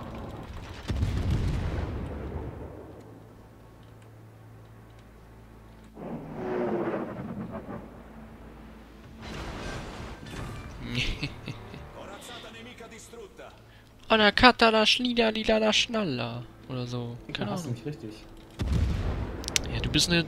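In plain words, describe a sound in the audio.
Heavy guns fire with deep, booming blasts.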